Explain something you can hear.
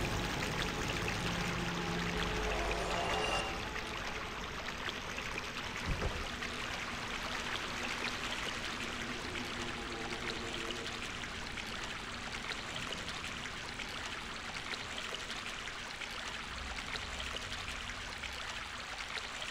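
Footsteps splash through shallow water in an echoing tunnel.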